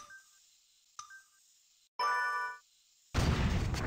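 Electronic countdown beeps sound.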